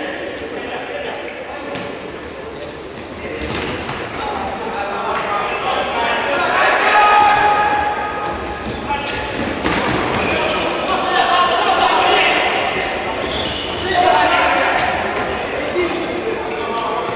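Men shout to each other in an echoing indoor hall.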